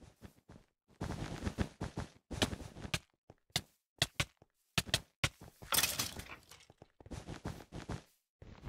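Sword blows land with sharp, quick hits.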